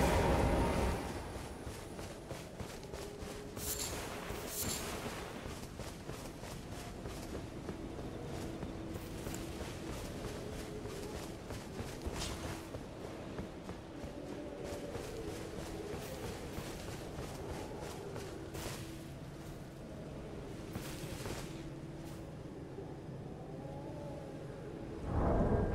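Heavy footsteps crunch through tall grass.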